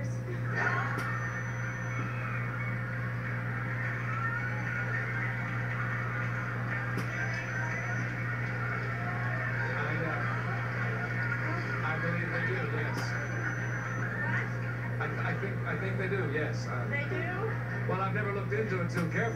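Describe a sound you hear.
A man talks through a television's small loudspeaker, heard across a room.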